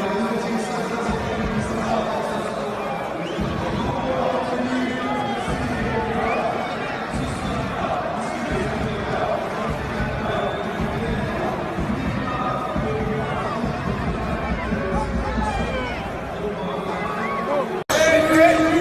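A large stadium crowd murmurs and cheers in the background.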